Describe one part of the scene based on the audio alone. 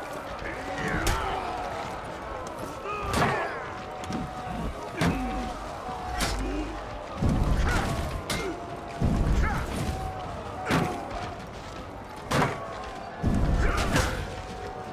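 Metal weapons clash and strike sharply.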